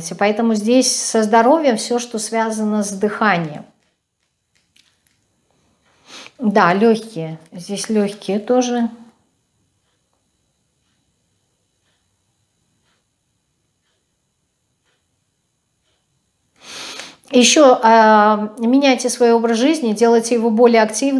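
A woman speaks calmly and closely into a microphone, with pauses.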